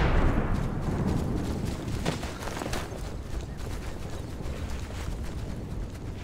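A large explosion booms and rumbles, then slowly fades.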